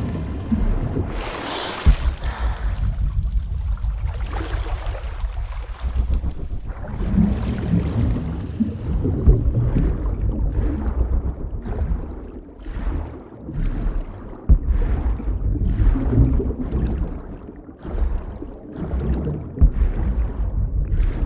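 A swimmer's strokes whoosh through the water in steady surges.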